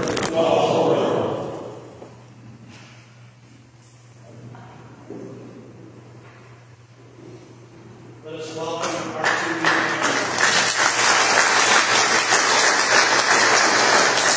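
Several adults talk and call out together in a large echoing room.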